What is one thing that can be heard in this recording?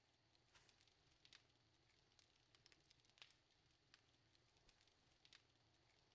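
A fire crackles with short sharp pops.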